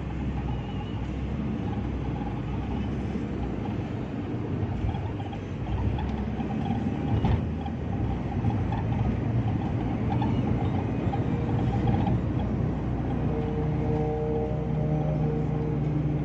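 A vehicle's engine and tyres rumble steadily on the road, heard from inside.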